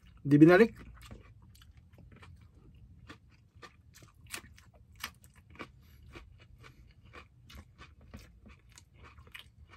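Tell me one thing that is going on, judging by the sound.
A man chews food with wet smacking sounds.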